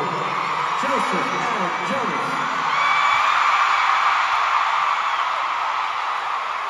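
A large crowd cheers and screams loudly in a big echoing arena.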